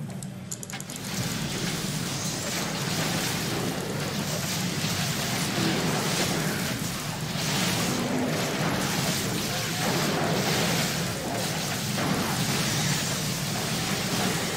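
Swords and spells clash in a fight.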